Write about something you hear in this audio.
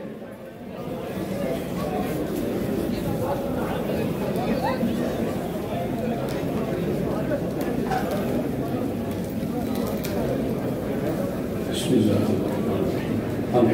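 A crowd murmurs in a large hall.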